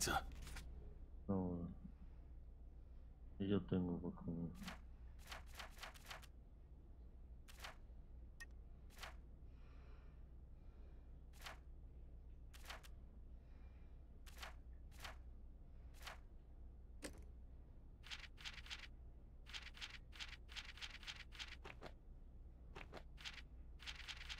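Menu clicks tick briefly as pages change.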